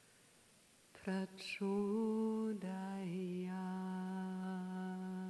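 A woman sings into a microphone in a clear, sustained voice.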